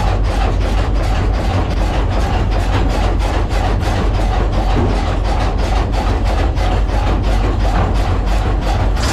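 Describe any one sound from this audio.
A machine rumbles loudly with a fast, steady rhythmic clatter.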